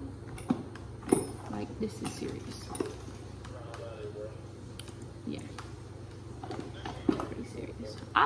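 Plastic items click and tap against a hard case.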